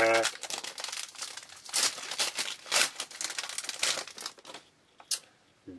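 A plastic wrapper crinkles and rustles as it is torn open.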